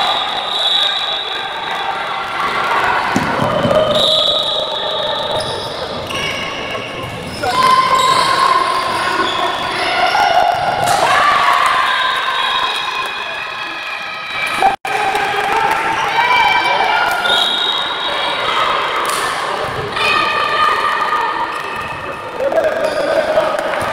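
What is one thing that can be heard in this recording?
A ball bounces on a hard indoor court.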